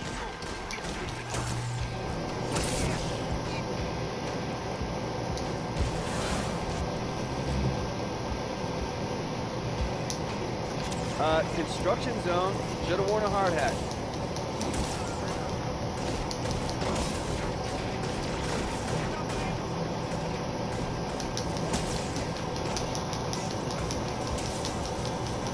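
Electric energy blasts crackle and zap again and again.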